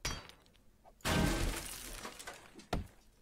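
A wooden cabinet crashes and breaks apart.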